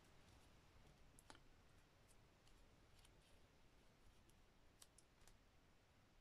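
Paper taps and rustles lightly.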